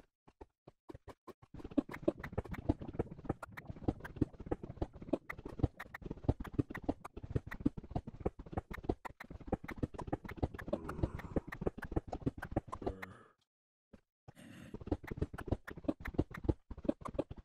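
Blocks break with rapid cracking and crumbling sounds.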